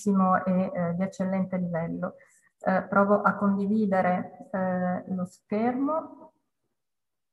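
A middle-aged woman speaks calmly through a microphone over an online call.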